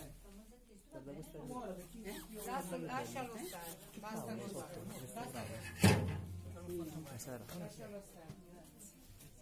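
Adults talk with each other nearby.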